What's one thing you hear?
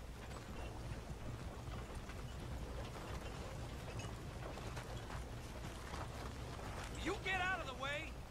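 A horse-drawn carriage rolls past with hooves clopping.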